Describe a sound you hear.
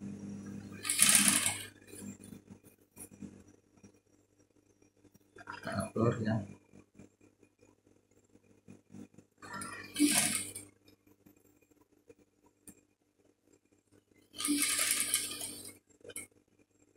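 A sewing machine runs in short, rattling bursts.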